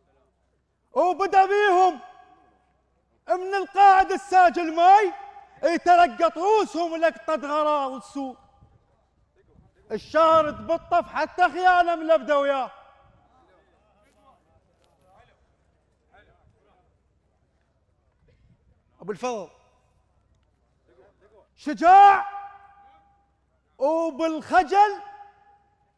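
A man chants loudly in a melodic, wailing voice, in phrases broken by pauses.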